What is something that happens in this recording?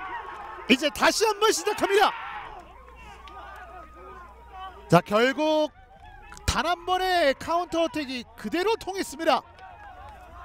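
Young men shout and cheer excitedly outdoors.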